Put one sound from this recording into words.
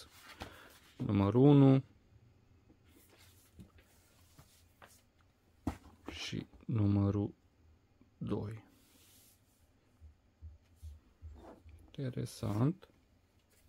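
Thin paper rustles and flaps as it is handled.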